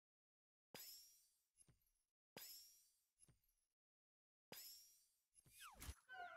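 Game blocks pop and burst with bright chiming effects.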